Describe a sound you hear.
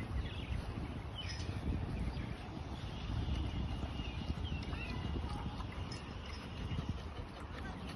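A dog laps water from a metal bowl.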